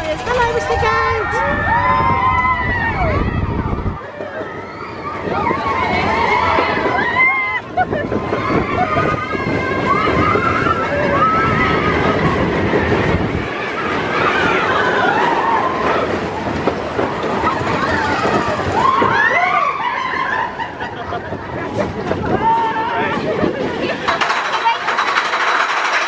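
Riders on a roller coaster scream and cheer loudly.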